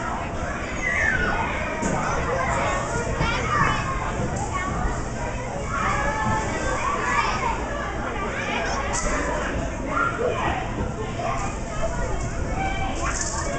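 A murmur of many voices fills the large echoing space.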